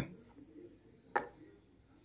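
A spoon scrapes softly through thick cream.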